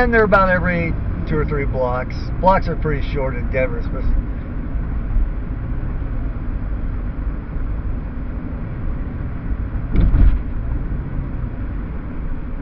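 A car drives along a road with a low, steady rumble.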